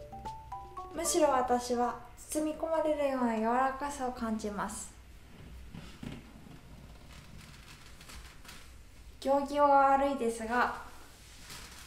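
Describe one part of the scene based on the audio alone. A woman speaks calmly and softly close by.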